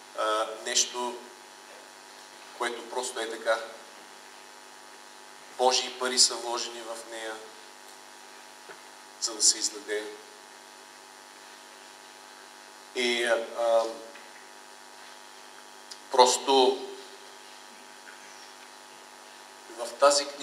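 A middle-aged man speaks with emphasis through a microphone, in bursts with pauses, in an echoing room.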